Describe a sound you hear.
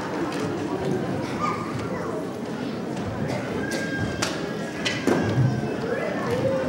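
A crowd of children and adults murmurs and chatters in a large echoing hall.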